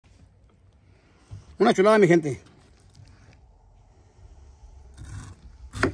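A knife cuts through firm fruit.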